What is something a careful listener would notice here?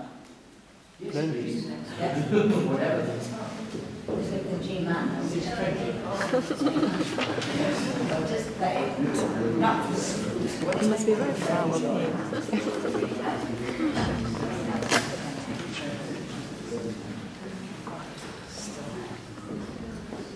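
An elderly woman talks calmly nearby.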